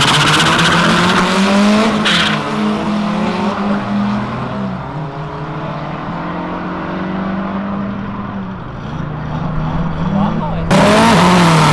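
Car engines roar as two cars accelerate hard and fade into the distance.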